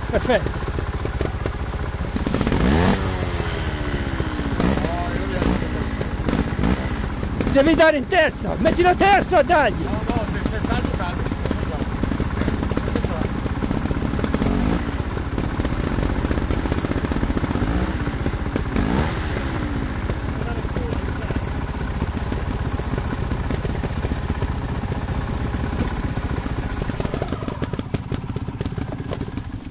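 A motorbike engine idles close by and revs in short bursts.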